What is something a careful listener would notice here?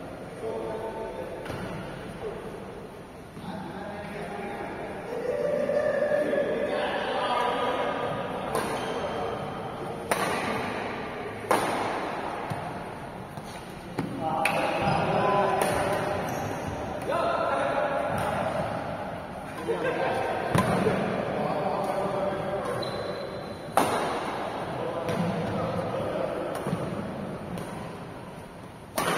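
Sneakers squeak on a court floor.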